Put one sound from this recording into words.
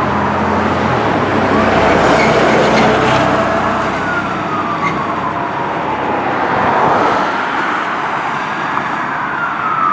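A large truck engine rumbles as it passes close by.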